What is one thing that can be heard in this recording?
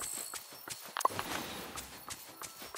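A magical shimmer chimes and sparkles.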